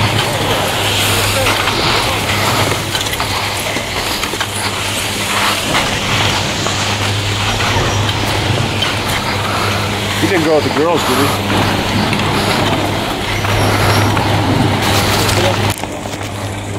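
A chairlift's machinery hums steadily.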